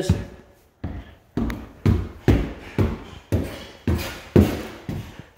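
Footsteps thud heavily up bare wooden stairs at a steady pace.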